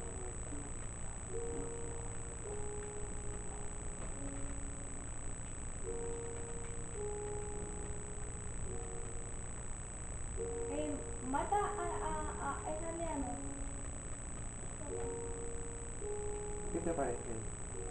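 Gentle music from a video game plays through a television loudspeaker.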